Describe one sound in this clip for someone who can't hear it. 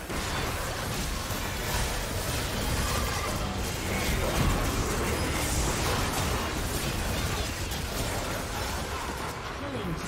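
Spell blasts and hits crackle and boom in a fast fight.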